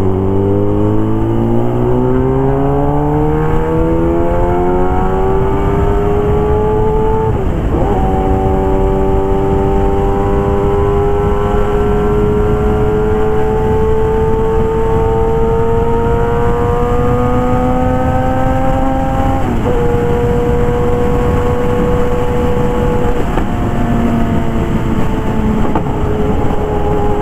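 Wind rushes past steadily.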